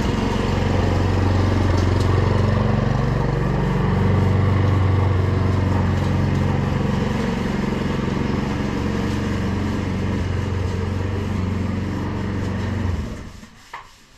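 A petrol lawn mower engine drones steadily close by, then cuts out.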